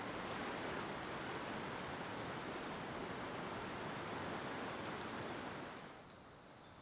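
A river rushes loudly over rapids.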